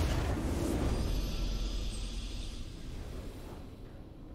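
A triumphant game fanfare swells and fades.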